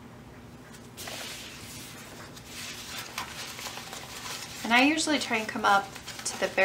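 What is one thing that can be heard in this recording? Fabric rustles softly as it is handled and folded.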